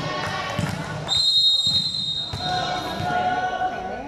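A volleyball bounces on a hard floor nearby.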